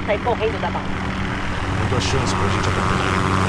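A helicopter drones overhead, growing louder.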